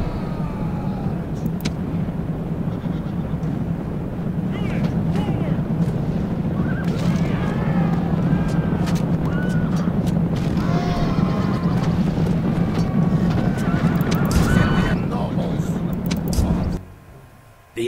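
A battle roars with clashing weapons and shouting soldiers.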